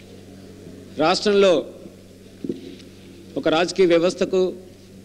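A man speaks into a microphone in short bursts, heard through a loudspeaker.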